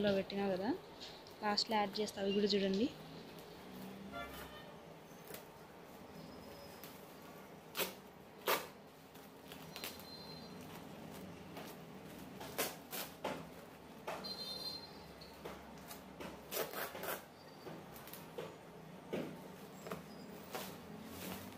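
Scissors snip through a woven plastic sack in short crisp cuts.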